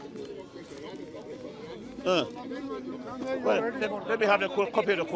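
A crowd murmurs in the background outdoors.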